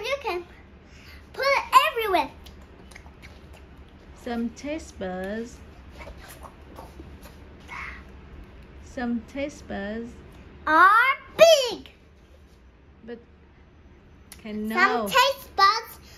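A young girl talks playfully close by, with high sing-song rises.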